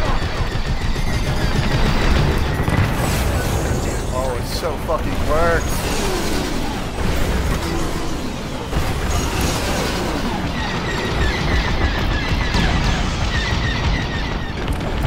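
A spacecraft engine roars steadily.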